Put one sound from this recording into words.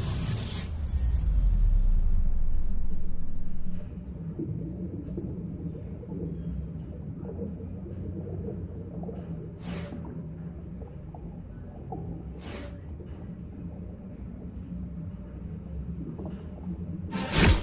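A deep underwater hum rumbles steadily.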